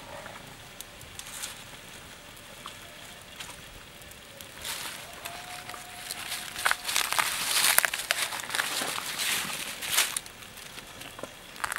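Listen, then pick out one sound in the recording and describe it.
Meat sizzles in a frying pan.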